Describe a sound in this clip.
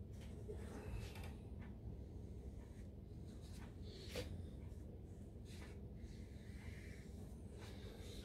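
A brush strokes softly across paper.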